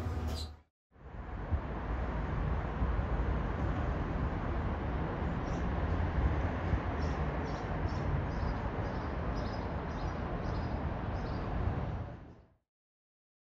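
River water flows steadily outdoors.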